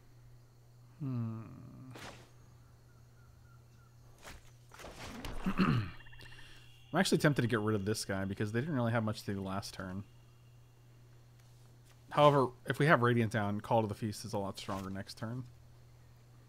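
A man talks calmly and closely into a microphone, in short bursts with pauses.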